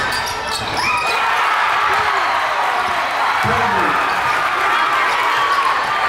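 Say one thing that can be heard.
A crowd cheers in an echoing gym.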